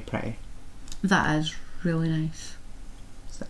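A woman speaks briefly close by.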